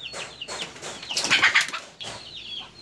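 A chicken flaps its wings in a sudden loud burst.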